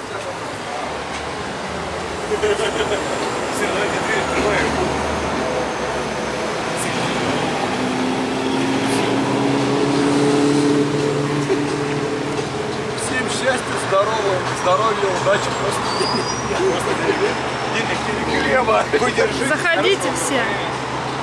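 Traffic hums steadily in the street.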